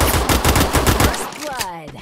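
A man speaks through a headset microphone.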